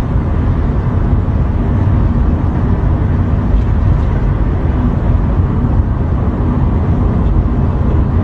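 A car engine rumbles steadily from inside a moving vehicle, with tyres humming on the road.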